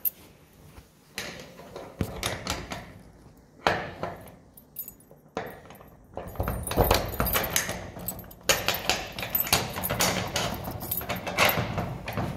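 A padlock rattles and clicks against a metal latch.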